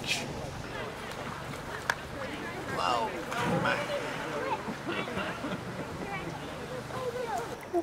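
Swimmers splash gently in water.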